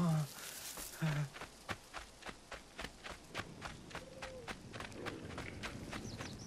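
Quick footsteps run over dry dirt.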